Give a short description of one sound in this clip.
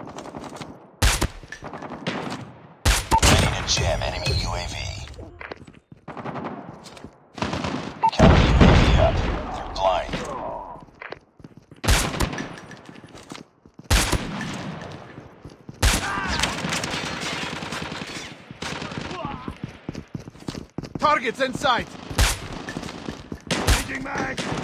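Sharp, loud rifle shots ring out one at a time.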